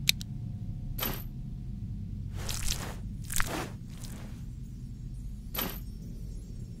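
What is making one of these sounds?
Soft magical whooshes sweep by several times.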